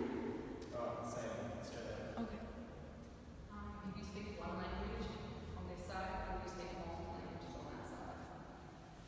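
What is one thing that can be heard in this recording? A young woman speaks, echoing in a large bare hall.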